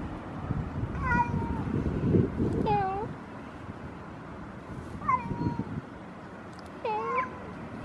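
A domestic cat meows several times.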